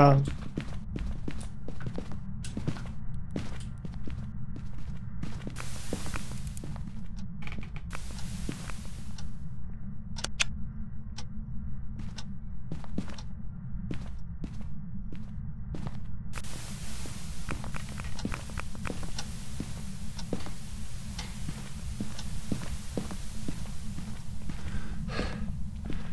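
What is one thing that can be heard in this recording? Footsteps thud softly across a floor indoors.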